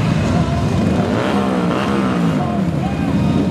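A motorcycle engine revs up and down as it passes.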